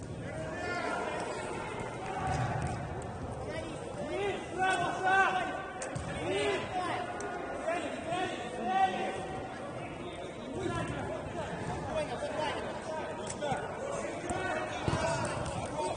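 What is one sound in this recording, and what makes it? A ball is kicked hard with a thud.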